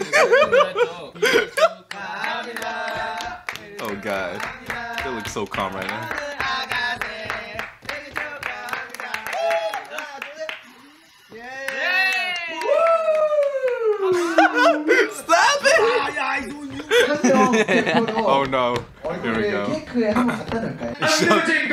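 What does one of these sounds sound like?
Two young men laugh close to a microphone.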